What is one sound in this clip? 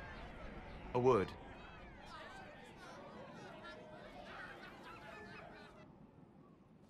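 A young woman asks a short question.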